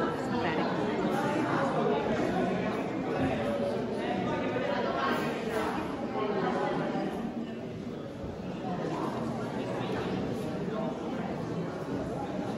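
A crowd of visitors chatters in a large echoing hall.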